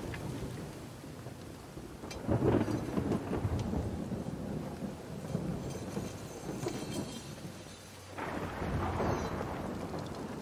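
A hand slides softly over a metal blade.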